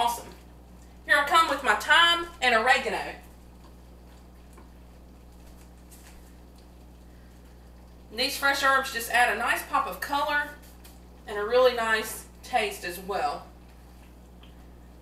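A wooden spatula stirs a thick sauce in a pan.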